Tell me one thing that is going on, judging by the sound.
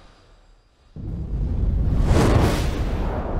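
Rocket engines roar with a rushing blast.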